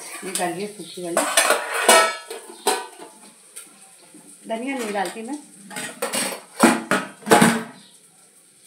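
A metal lid clatters.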